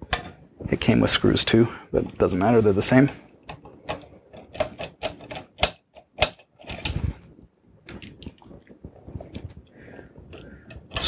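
A screwdriver clicks and scrapes against metal screws.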